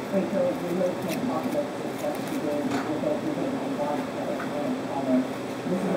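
Plastic cling wrap crackles as it is pressed over a bowl.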